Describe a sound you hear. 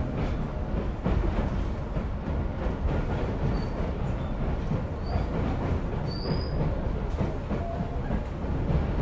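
A train rumbles along the tracks with a steady, rolling roar.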